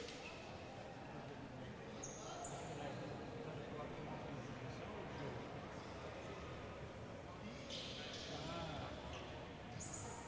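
Players' voices call out across a large echoing sports hall.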